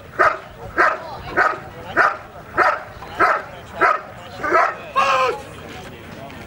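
A dog barks loudly and rapidly over and over.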